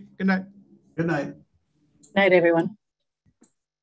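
A woman says goodnight over an online call.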